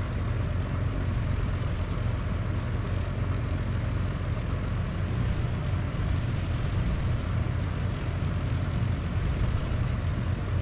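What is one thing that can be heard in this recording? An aircraft engine drones steadily and loudly.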